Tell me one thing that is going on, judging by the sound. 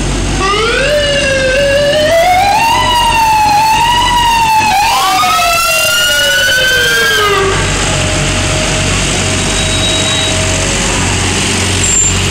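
A large truck engine rumbles as it drives slowly past.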